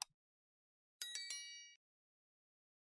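A small bell chimes brightly and fades.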